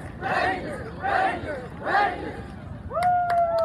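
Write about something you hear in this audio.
A group of young players shouts a chant in unison outdoors.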